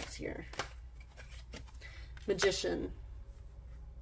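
A card slides softly across a cloth-covered table.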